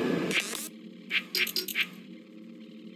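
Short electronic clicks sound as a menu is browsed.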